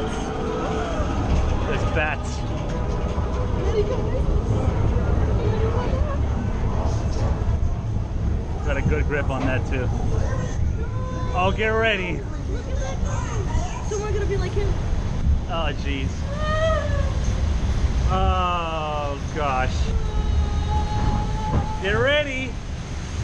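A small train rumbles steadily through a rock tunnel.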